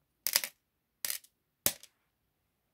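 Small objects click against a hard surface.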